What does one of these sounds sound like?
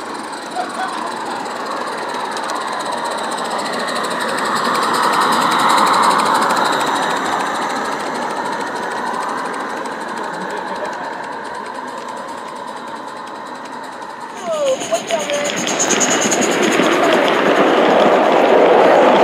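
Model train wheels clatter along the tracks.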